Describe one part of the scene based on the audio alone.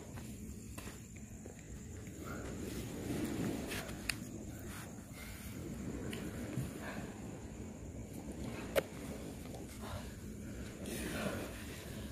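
A young man talks quietly close by.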